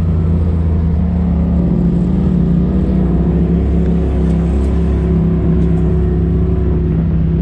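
Tyres roll over a paved road.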